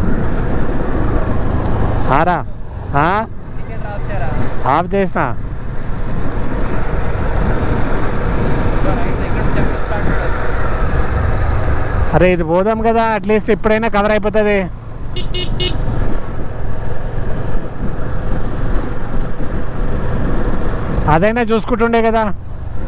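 A motorcycle engine hums steadily up close.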